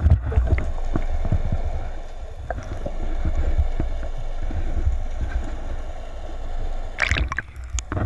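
Water rumbles and gurgles dully underwater.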